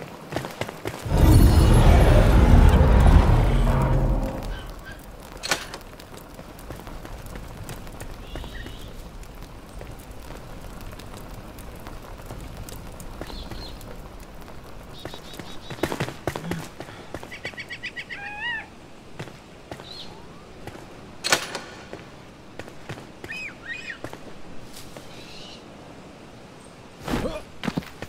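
Footsteps patter on stone as a game character runs.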